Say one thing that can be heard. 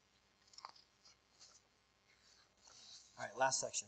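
Paper rustles as a man handles pages.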